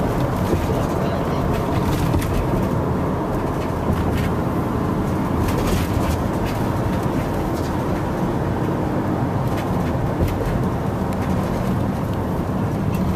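A car drives steadily along a road, heard from inside.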